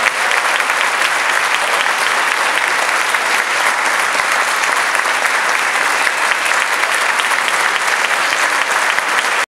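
An audience claps loudly and steadily in a large hall.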